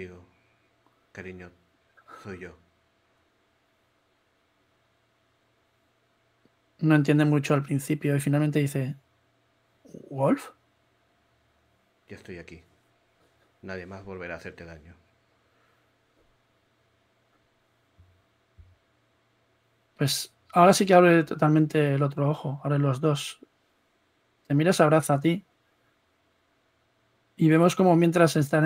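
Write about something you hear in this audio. A man speaks calmly over an online call, with pauses.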